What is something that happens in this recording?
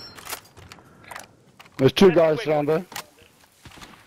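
A rifle magazine is pulled out and clicks back into place.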